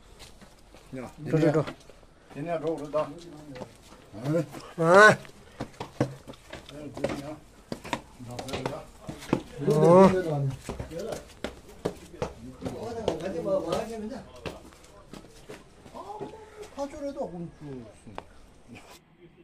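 A man talks nearby in a casual voice.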